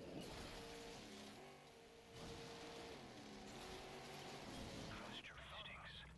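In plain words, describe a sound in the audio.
A racing car engine hums and revs.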